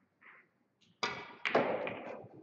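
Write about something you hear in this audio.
Billiard balls knock together.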